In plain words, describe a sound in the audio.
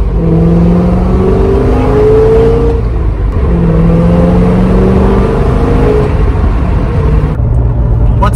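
A car engine hums with a low, steady rumble.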